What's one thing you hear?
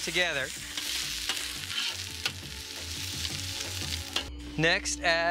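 Vegetables sizzle and hiss in a hot pan.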